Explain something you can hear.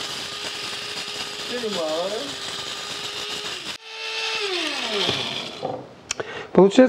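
An electric coffee grinder whirs loudly, then winds down.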